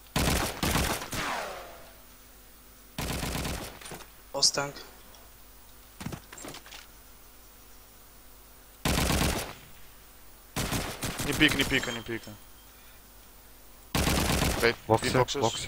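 A rifle fires in loud short bursts.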